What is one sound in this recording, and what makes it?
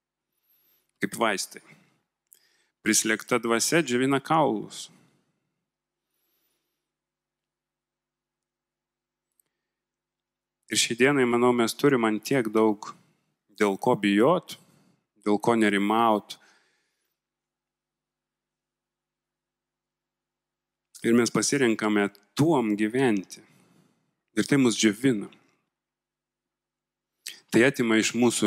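A man speaks calmly into a microphone with long pauses, heard through a loudspeaker.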